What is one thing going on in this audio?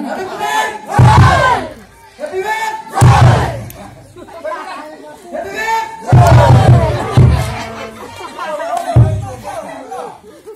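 A crowd of men and women shouts together in loud bursts.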